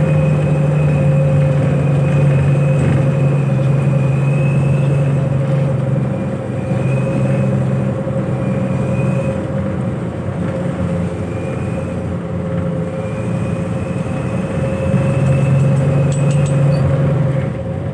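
A bus engine drones steadily while the bus rolls along.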